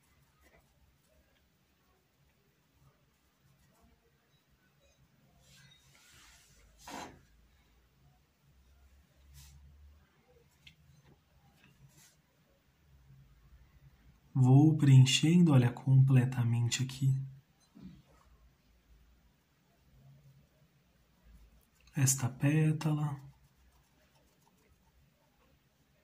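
A paintbrush brushes softly across cloth.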